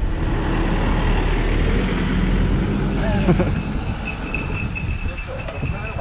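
A bus engine rumbles close by, then fades as the bus pulls away.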